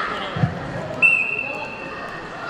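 A whistle blows sharply once.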